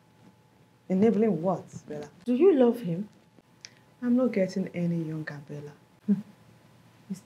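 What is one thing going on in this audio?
A woman speaks tearfully and pleadingly, close by.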